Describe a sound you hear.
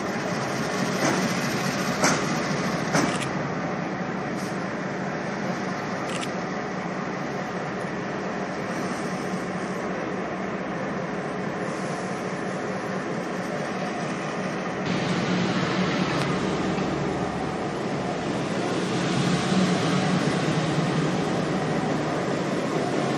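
A diesel locomotive engine rumbles steadily, growing louder and closer.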